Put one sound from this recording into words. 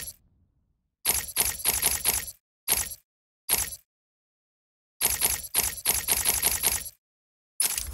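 Short electronic clicks tick in quick bursts as menu items change.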